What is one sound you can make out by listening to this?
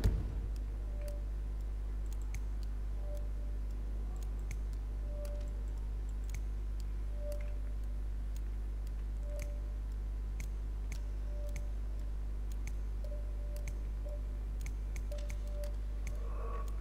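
Soft electronic blips sound again and again at an even pace.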